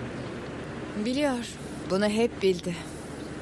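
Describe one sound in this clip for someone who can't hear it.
A woman speaks.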